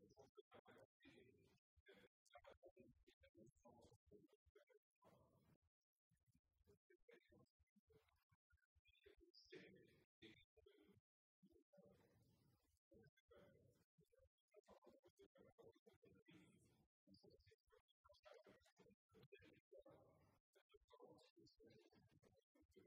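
An older man speaks steadily into a microphone in a large, quiet hall.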